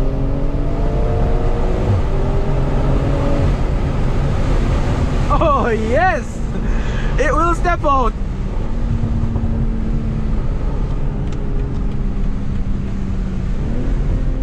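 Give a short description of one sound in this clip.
Tyres roar on the road at speed.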